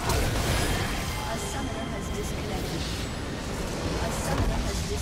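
Spells and weapons clash loudly in a game battle.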